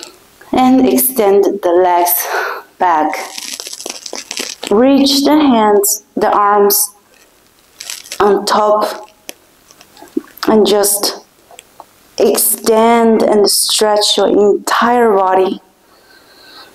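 A young woman speaks calmly and softly, close to a microphone.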